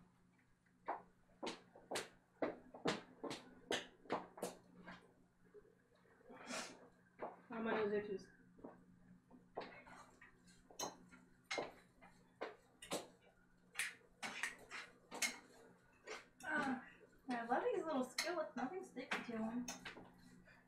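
Dishes and utensils clatter and knock on a counter.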